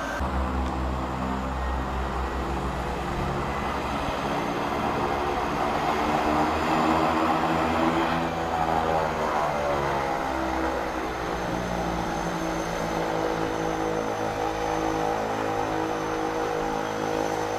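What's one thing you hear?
Propeller engines of a small plane drone loudly as it taxis and turns.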